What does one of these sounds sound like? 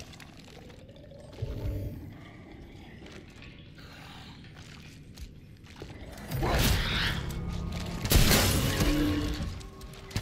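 Footsteps thud on a hard metal floor.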